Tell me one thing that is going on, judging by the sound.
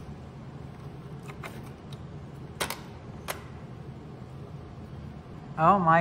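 Metal parts click and clatter as they are handled.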